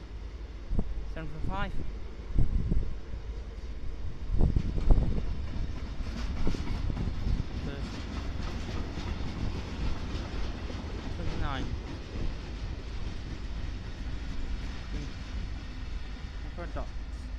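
A train rumbles past along the tracks.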